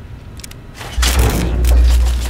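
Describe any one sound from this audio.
A large machine starts up with a loud, deep hum.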